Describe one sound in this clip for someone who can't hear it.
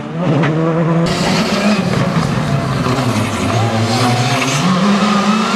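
A second rally car engine approaches, revving loudly.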